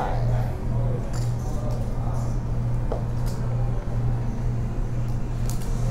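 Poker chips click as a man stacks and pushes them.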